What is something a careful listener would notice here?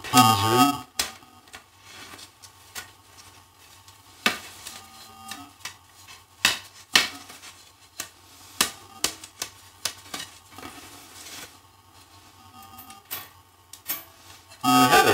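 Wooden parts of a frame saw knock and click together.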